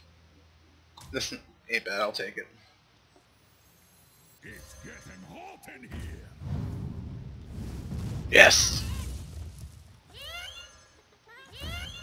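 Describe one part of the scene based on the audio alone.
Cartoonish game sound effects whoosh and chime as cards are played.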